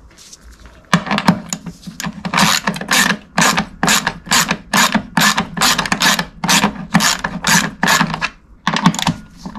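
A ratchet wrench clicks rapidly in repeated bursts.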